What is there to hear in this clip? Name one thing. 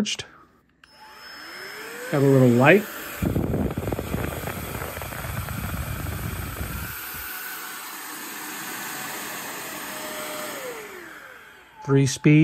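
A small electric blower whirs steadily with a rushing hiss.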